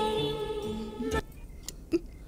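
Music plays from a gramophone and cuts off abruptly.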